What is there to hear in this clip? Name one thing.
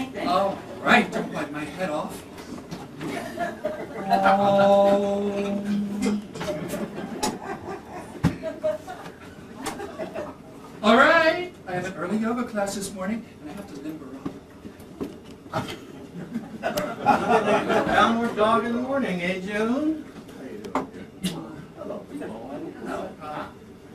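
A performer sings and speaks in a lively, expressive voice.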